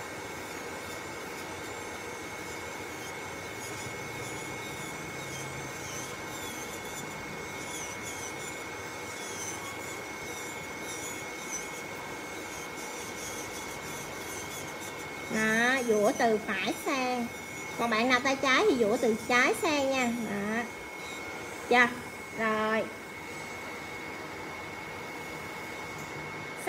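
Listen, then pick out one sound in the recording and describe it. An electric nail drill whirs with a steady high whine.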